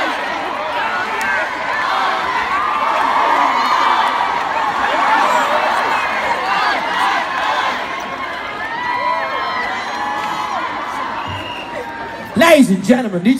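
A crowd cheers and chatters loudly close by.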